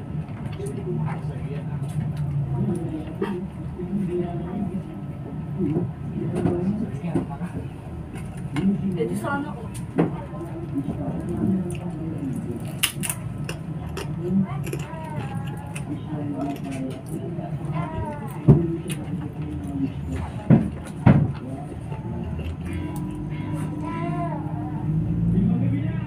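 A woman talks softly close to the microphone.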